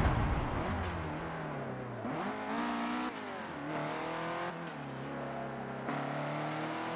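A racing car engine revs and roars as it changes gear.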